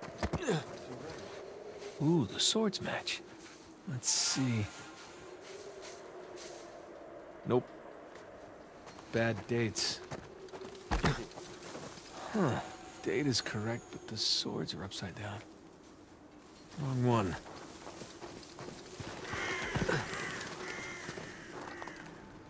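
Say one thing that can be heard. Footsteps crunch over grass and gravel.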